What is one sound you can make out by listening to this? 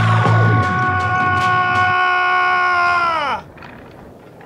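A man shouts loudly and angrily.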